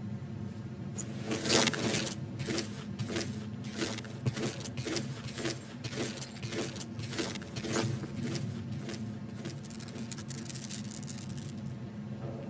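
Heavy armoured footsteps clank on a hard floor, slow and even.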